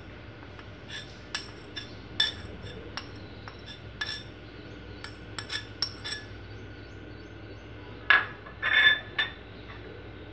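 A metal spoon clinks and scrapes against a metal bowl.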